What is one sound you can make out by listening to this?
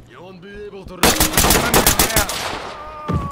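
A rifle fires a rapid burst of shots that ring out.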